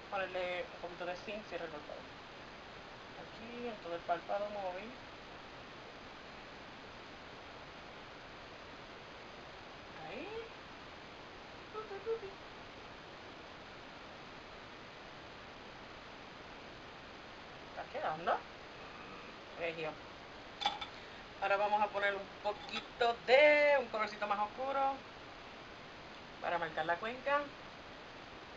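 A woman talks calmly and close by in short bursts.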